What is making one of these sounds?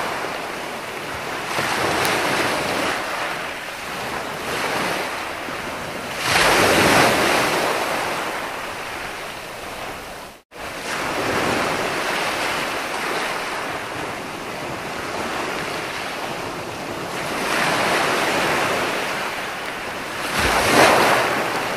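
Ocean waves roll in and wash up on the shore, swelling and fading in turn.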